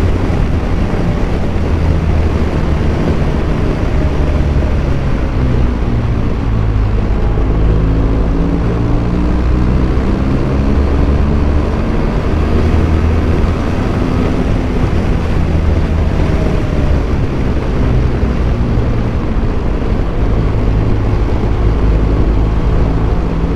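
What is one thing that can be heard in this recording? A motorcycle engine hums steadily, its pitch rising and falling with the gears.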